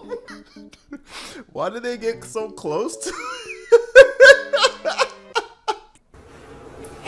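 A young man laughs heartily close to a microphone.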